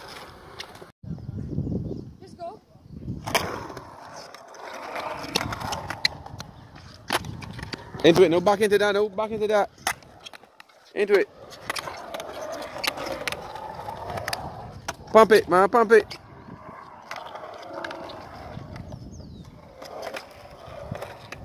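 A skateboard clatters against concrete.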